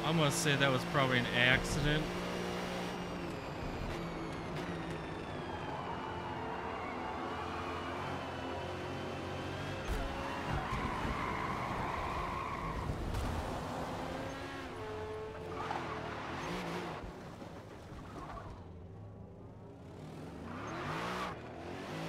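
A racing car engine roars at high revs, then drops in pitch as it brakes.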